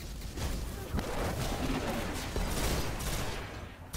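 Electricity crackles and sizzles loudly.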